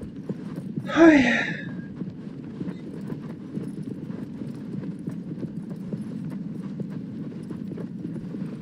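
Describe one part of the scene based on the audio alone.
A horse gallops, its hooves thudding steadily on sand.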